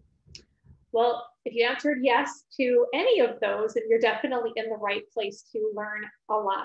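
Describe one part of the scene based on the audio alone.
A woman speaks calmly into a microphone, heard as if over an online call.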